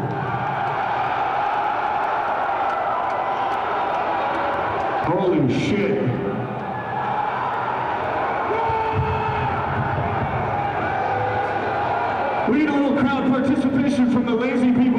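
A crowd cheers and roars loudly in a large echoing hall.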